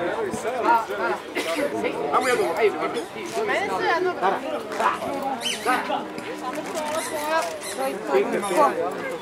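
Several men and women chatter close by outdoors.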